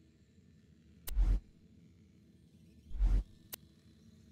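Soft whooshing sounds mark a game menu switching pages.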